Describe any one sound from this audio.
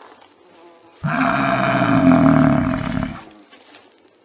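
A water buffalo lows loudly nearby.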